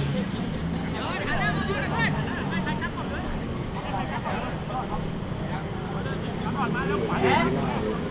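Football players shout to each other across an open field outdoors.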